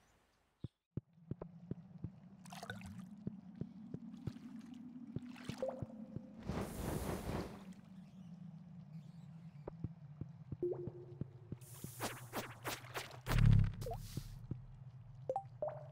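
Lava rumbles and bubbles with a low steady drone.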